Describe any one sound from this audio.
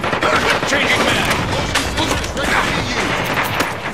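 A rifle fires rapid bursts of shots.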